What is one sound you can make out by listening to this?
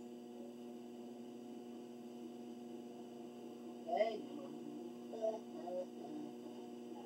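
A treadmill motor hums steadily.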